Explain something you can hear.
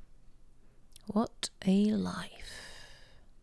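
A young woman speaks briefly and with animation, close to a microphone.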